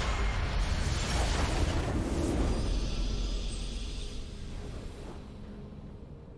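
A heavy crystal explodes with a loud, rumbling blast that slowly fades.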